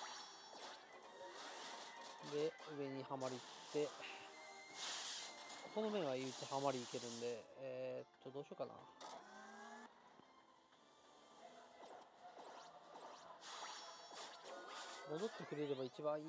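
Electronic game sound effects chime and crash during a battle.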